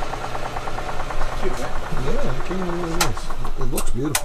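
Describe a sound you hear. A lathe motor hums steadily, then winds down and stops.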